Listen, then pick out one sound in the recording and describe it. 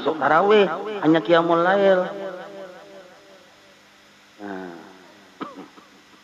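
A man speaks with animation into a microphone, his voice echoing in a room.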